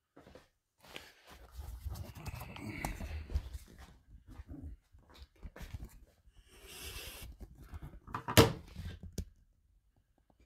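Hands rustle and knock against a phone close by.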